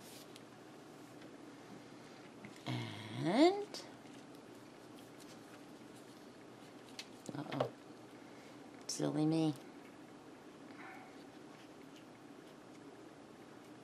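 Paper rustles softly as hands fold and press it.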